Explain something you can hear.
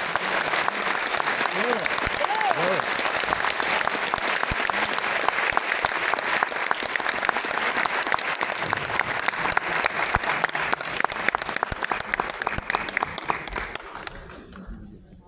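An audience applauds loudly in a large hall, then the clapping dies away.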